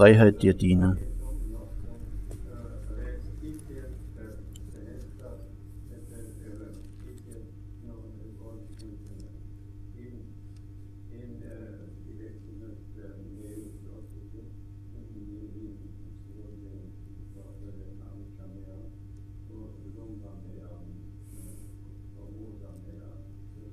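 An elderly man murmurs prayers quietly.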